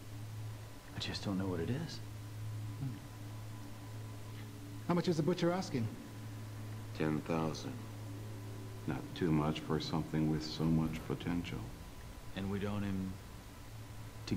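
A middle-aged man speaks calmly and menacingly close by.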